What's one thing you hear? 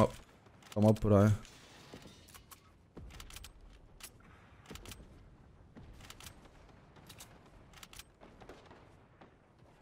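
Quick sharp clicks and taps from a video game ring out repeatedly.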